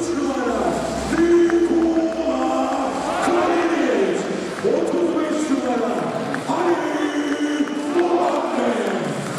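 A large crowd chants and sings loudly in an echoing arena.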